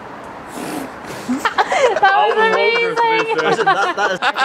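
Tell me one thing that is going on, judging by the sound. A young man laughs up close.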